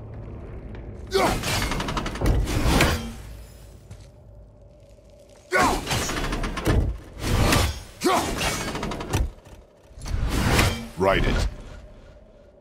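A heavy axe swishes through the air.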